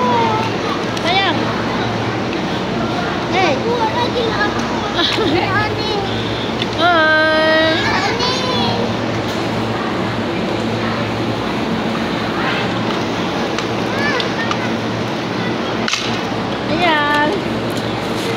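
Children squeal and shout with excitement.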